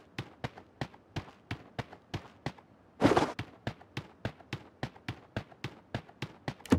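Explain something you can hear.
Footsteps thump quickly and steadily on a hard floor.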